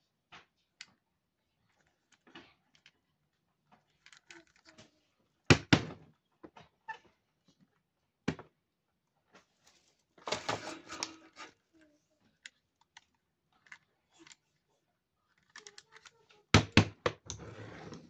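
Small plastic toys click and clatter as they are handled and set down.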